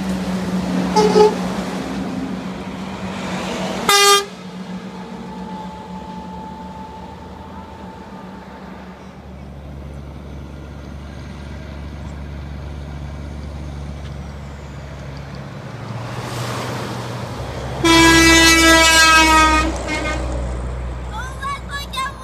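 Heavy trucks rumble past on the road.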